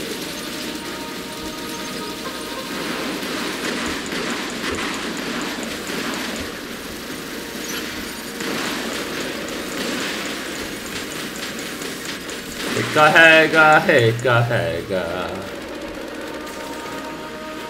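Heavy mechanical footsteps thud steadily.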